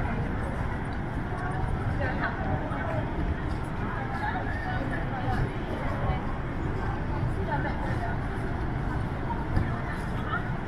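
Many people talk and chatter at a distance outdoors.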